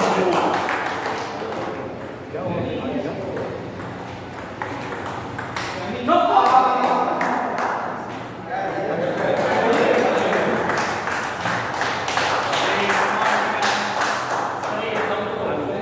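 People chatter in an echoing hall.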